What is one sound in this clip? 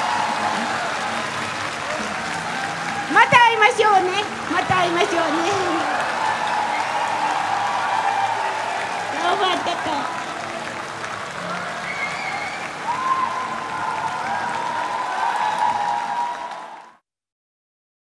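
A large crowd cheers and claps in a big echoing hall.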